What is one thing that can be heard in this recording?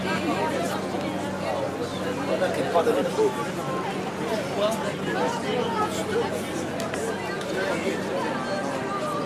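A busy crowd of men and women chatters all around outdoors.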